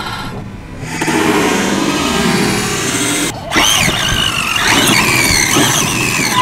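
A small electric motor of a toy car whines and revs as the car speeds along pavement.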